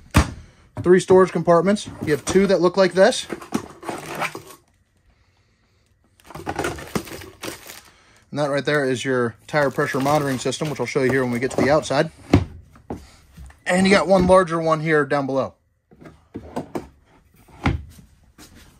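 Wooden drawers slide open and bump shut.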